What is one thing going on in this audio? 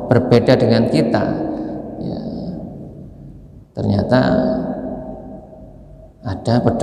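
An elderly man speaks calmly into a microphone in a reverberant room.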